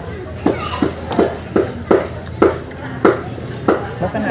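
Liquid pours and splashes from a ladle onto a plate.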